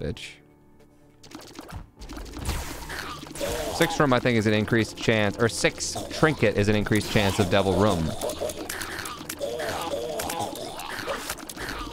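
Rapid popping and splatting game sound effects play.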